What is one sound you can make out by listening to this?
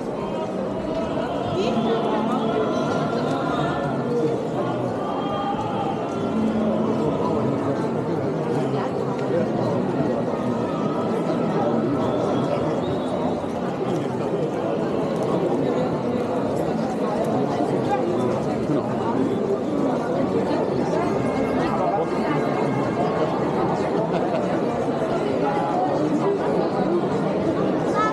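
Footsteps shuffle on stone paving.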